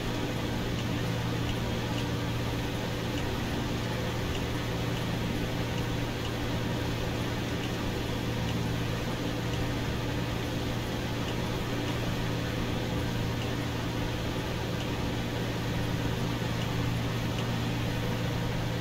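A small propeller plane's engine drones steadily in flight.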